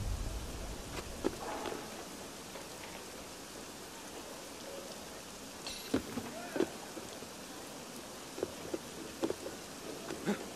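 Hands and feet scrape and thud against a stone wall while climbing.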